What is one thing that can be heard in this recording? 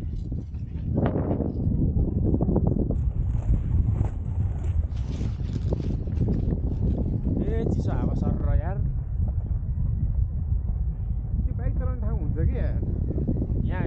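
Boots crunch on packed snow.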